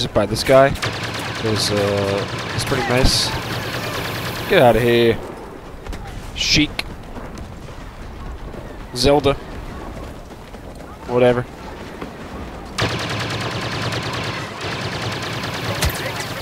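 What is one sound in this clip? Blaster guns fire rapid zapping shots.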